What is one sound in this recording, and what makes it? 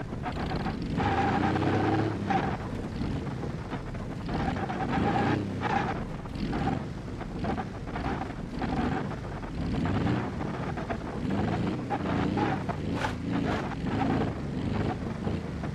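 Car tyres rumble and knock over wooden logs.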